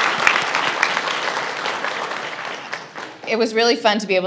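An audience applauds and then fades out.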